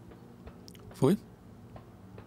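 A sharp metallic blow strikes once.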